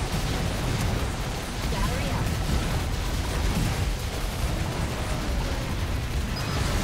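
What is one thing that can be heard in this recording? Rapid blasts and explosions crackle and boom over a pounding low rumble.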